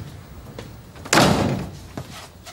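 A door closes with a thud.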